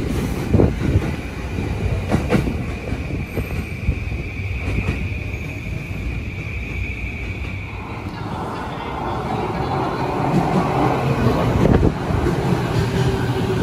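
A train approaches with a rising rumble.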